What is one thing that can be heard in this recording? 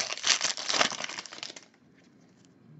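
A foil wrapper crinkles loudly as it is torn open.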